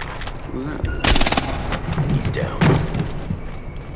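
A silenced gun fires a few muffled shots.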